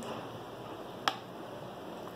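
A plastic bottle cap clicks.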